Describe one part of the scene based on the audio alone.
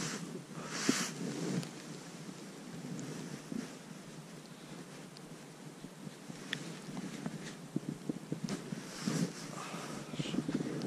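Wind blows steadily outdoors, gusting against the microphone.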